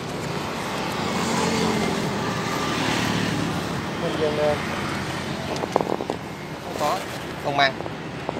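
A man speaks close by in a calm voice.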